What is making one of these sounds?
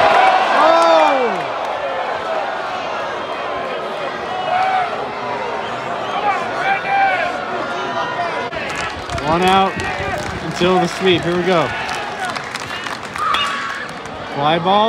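Men in the crowd shout loudly at close range.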